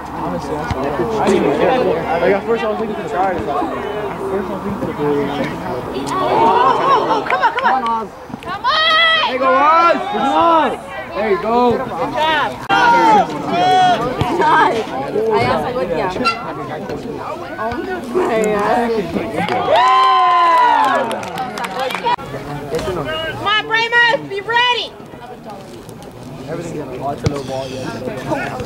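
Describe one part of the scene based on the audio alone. Spectators shout and cheer loudly close by, outdoors.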